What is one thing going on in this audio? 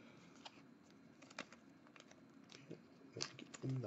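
A plastic wrapper crinkles as it is peeled open.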